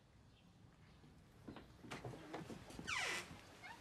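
A glass door swings open.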